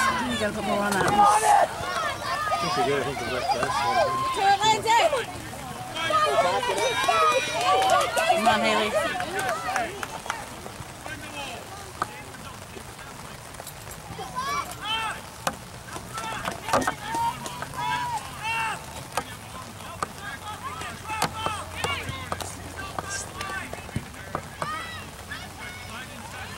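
Several women shout and cheer with excitement close by, outdoors.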